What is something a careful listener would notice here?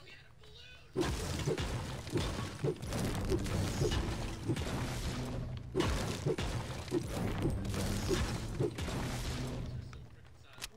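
A pickaxe strikes stone walls with repeated heavy thuds.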